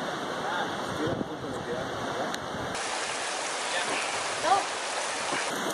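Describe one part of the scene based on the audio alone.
Water flows and murmurs steadily.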